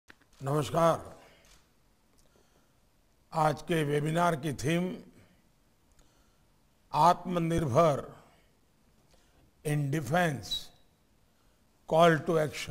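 An elderly man speaks slowly and formally into a microphone, with pauses between phrases.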